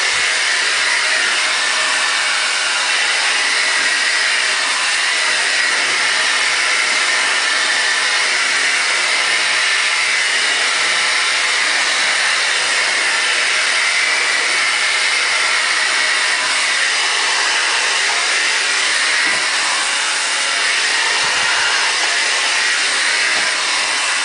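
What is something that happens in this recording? A hair dryer blows with a steady, loud whoosh close by.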